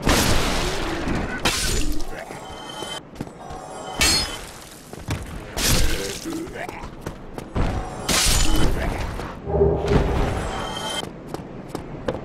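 Heavy weapon blows strike and thud against a creature.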